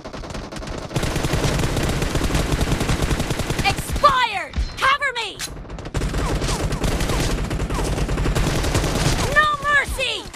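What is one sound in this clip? Rapid automatic rifle fire rattles in bursts.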